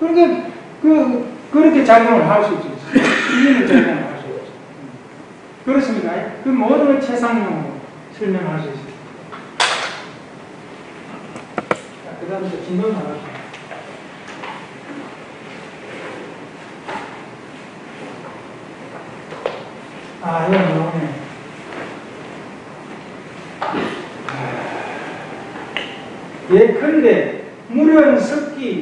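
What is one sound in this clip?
An elderly man speaks calmly to a room, heard through a microphone, with pauses.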